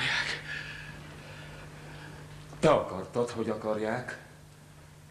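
A man speaks in a theatrical voice, close by.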